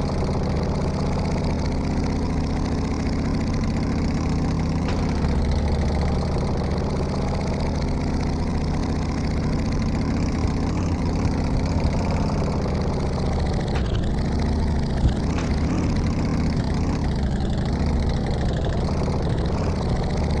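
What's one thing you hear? A motorcycle engine drones steadily as the bike rides along.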